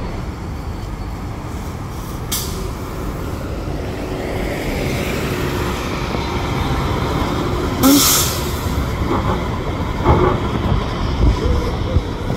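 A city bus engine rumbles as the bus drives past close by.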